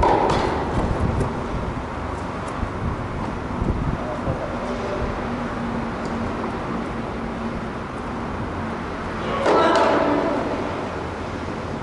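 A tennis ball is struck by rackets back and forth in an echoing indoor hall.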